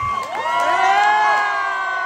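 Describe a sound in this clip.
A man laughs loudly.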